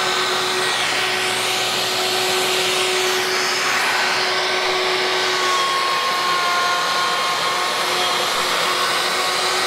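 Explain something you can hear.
A router whines loudly and steadily while cutting wood.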